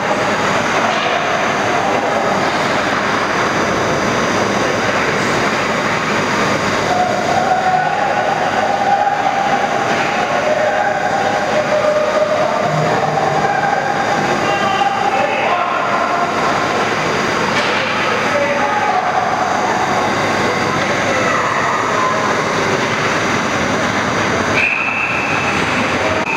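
Ice skates scrape and carve across the ice in a large echoing arena.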